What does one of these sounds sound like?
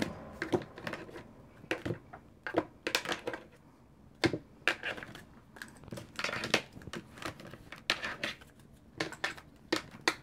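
Cards tap and slide softly onto a table.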